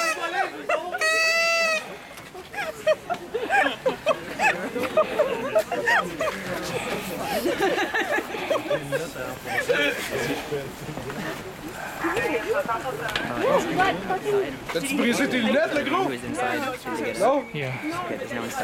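Several men talk over one another close by, outdoors.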